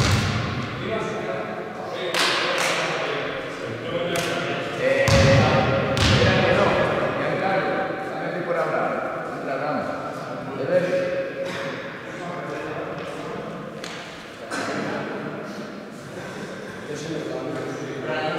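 Young men talk and call out to each other in a large echoing hall.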